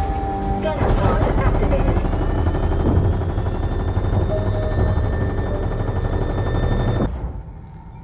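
A deep engine hum rumbles steadily.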